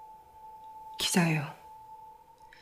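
Another young woman speaks quietly and coldly, close by.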